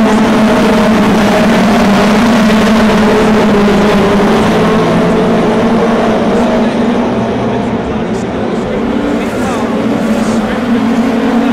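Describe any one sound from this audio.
Several race car engines roar loudly at close range.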